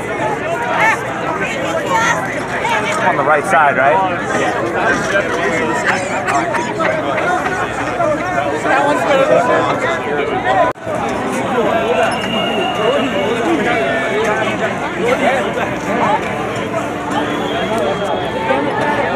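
A dense crowd of men and women talks and shouts outdoors.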